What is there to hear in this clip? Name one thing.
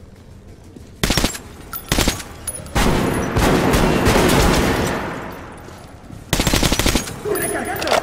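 A rifle fires in loud bursts in a closed space.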